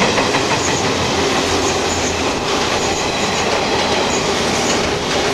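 A passenger train rushes past close by with a loud, steady roar.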